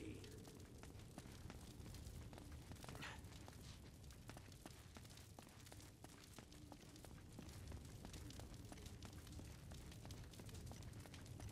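Footsteps walk steadily on a hard stone floor.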